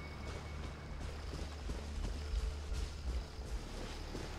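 Footsteps run quickly through grass.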